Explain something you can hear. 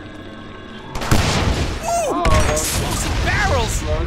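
Gunshots and clashes from a video game ring out.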